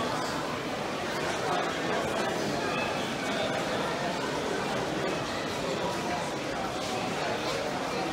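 A crowd of adults murmurs and chatters in a large indoor hall.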